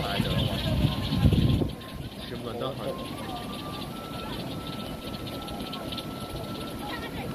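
A crowd of people murmurs faintly in the distance.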